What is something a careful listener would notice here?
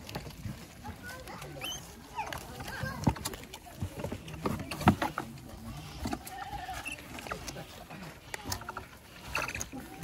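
Animals munch and crunch on food close by.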